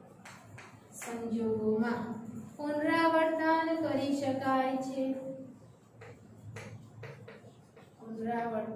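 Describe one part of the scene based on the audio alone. A woman speaks calmly and clearly, as if teaching.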